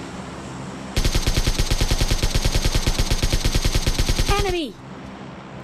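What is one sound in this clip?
A rifle fires a rapid burst of automatic shots.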